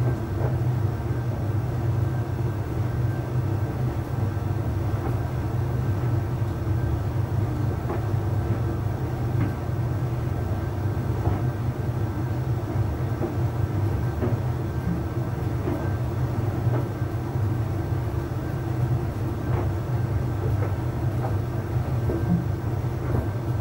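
Clothes thump softly as they tumble inside a dryer drum.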